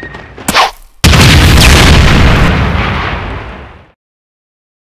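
A loud explosion booms and rumbles away.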